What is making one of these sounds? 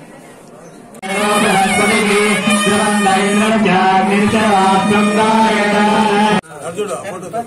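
A crowd chants together in a steady tune.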